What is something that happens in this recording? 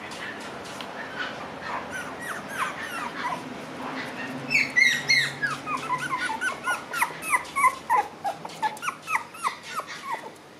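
A puppy whines and yelps in high squeaky cries, close by.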